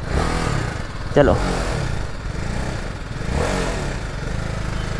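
A motorcycle engine revs up briefly.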